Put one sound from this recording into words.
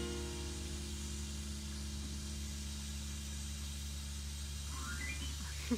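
A piano chord rings out and slowly fades.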